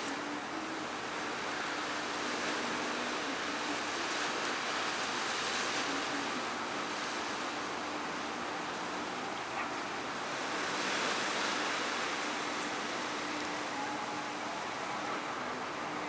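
A ship's engine hums steadily as the vessel glides past.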